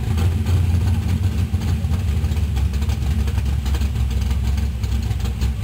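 A muscle car's engine rumbles deeply as the car rolls slowly past close by.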